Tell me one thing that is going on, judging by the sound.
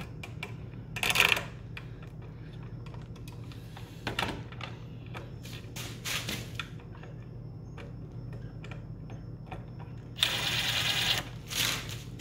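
A cordless drill whirs in short bursts, driving screws.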